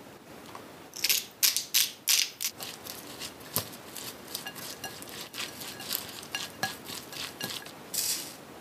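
Chopsticks scrape and clatter against a glass bowl while mixing food.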